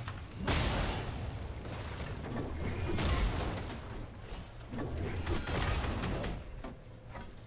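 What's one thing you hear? Game sound effects whoosh and thump.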